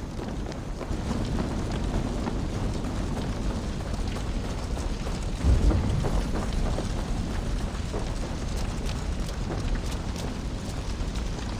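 Footsteps run quickly over wood and dirt.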